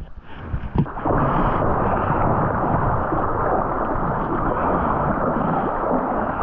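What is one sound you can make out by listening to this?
Water splashes and laps as a man swims.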